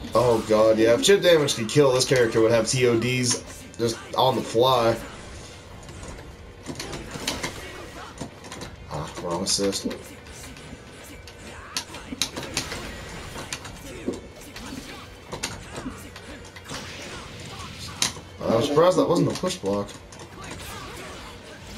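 Game fighters clash with sharp hits and bursts of sound effects.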